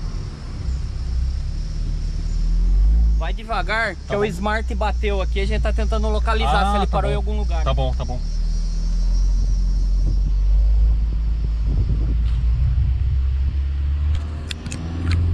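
A car engine hums and rumbles steadily from inside the car.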